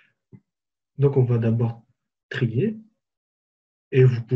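A man speaks calmly into a microphone, close up.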